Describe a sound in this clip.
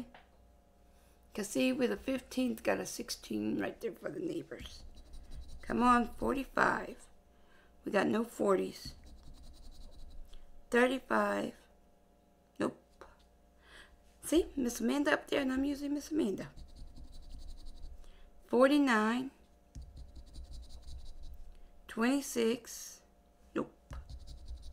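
A coin scratches across a paper card.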